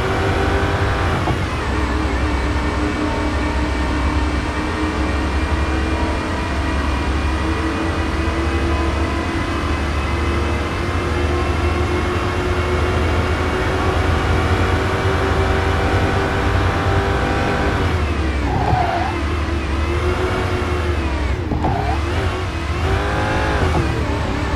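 A supercharged V8 sports car engine drops in pitch as it shifts gears.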